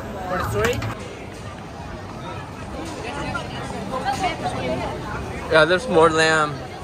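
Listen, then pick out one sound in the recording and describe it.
A crowd chatters outdoors on a busy street.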